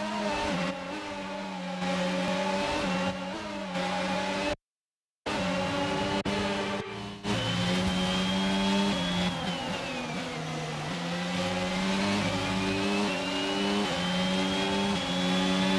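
A racing car engine screams at high revs and shifts through gears.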